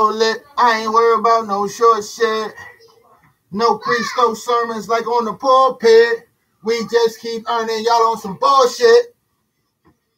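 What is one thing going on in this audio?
A man sings loudly close to a microphone.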